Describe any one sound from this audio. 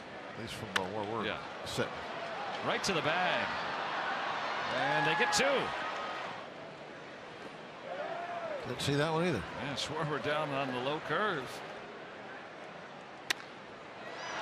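A large crowd murmurs in an open-air stadium.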